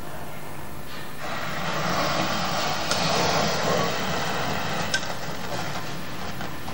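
A flame bursts up and roars with a rushing whoosh.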